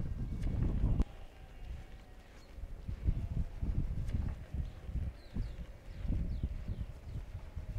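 Sheep bleat in the distance.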